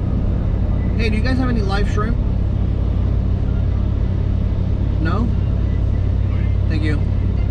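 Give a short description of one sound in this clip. A man speaks on a phone nearby in short bursts.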